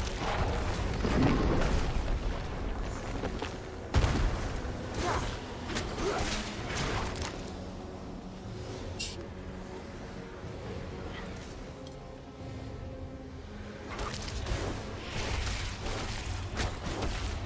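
Game monsters are struck with heavy impacts.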